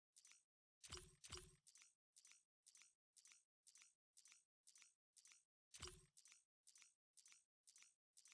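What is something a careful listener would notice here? Short game menu ticks repeat at a steady, quick pace.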